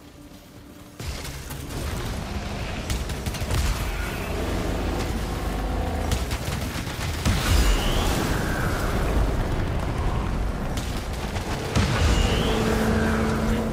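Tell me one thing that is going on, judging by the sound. Energy blasts boom and rumble.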